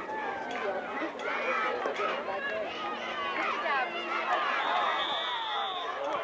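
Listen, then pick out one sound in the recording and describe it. Football pads clack as young players collide.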